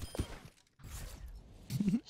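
An explosion bursts with a loud boom.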